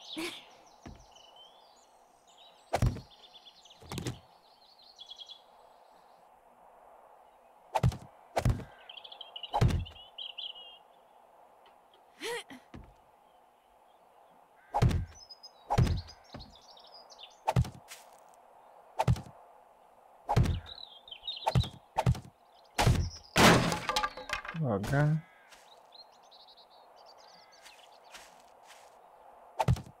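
Wooden blocks thump into place one after another.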